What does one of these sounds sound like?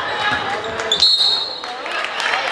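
A referee blows a short, shrill whistle.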